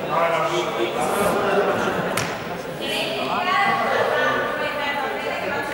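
Children and teenagers chatter and shout in a large echoing hall.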